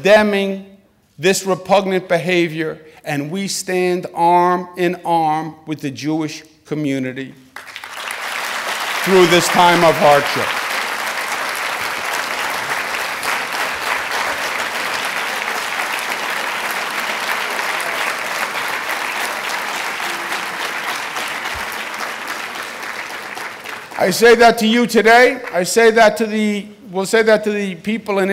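A middle-aged man speaks forcefully through a microphone in a large hall.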